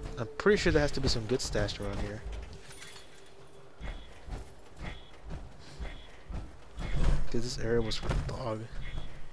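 Heavy metal footsteps clank steadily on gravel.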